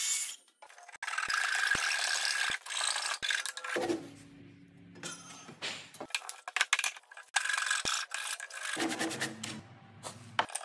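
A hand saw cuts into a wooden post.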